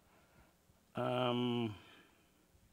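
A man says a single drawn-out word into a microphone.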